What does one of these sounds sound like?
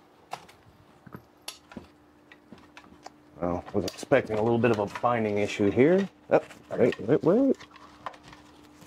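Metal parts of a rifle click and clack as they are handled.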